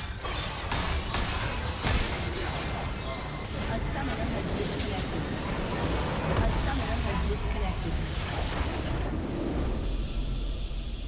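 Video game battle sound effects clash and burst.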